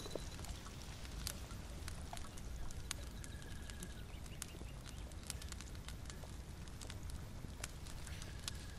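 A small fire crackles and pops softly.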